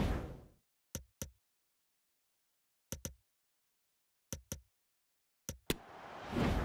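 Short menu clicks sound one after another.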